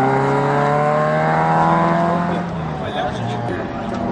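A rally car engine roars and revs through gear changes, close by.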